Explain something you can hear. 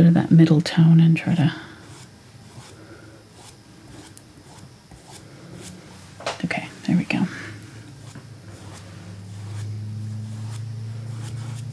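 A paintbrush dabs and brushes softly on canvas.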